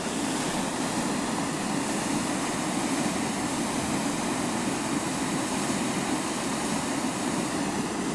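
A strong stream of water rushes and splashes steadily.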